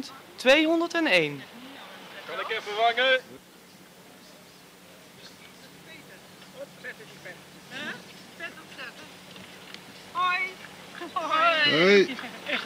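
Elderly women and men call out cheerfully nearby.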